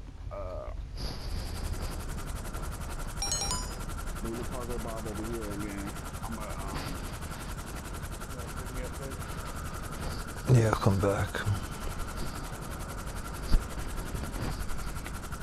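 A helicopter's rotor thumps steadily as it hovers.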